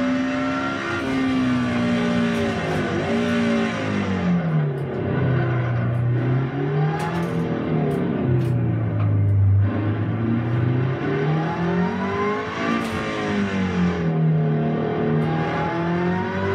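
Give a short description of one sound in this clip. A car engine in a racing game revs up and down through the gears.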